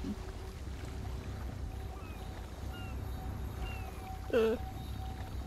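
Soft menu chimes blip.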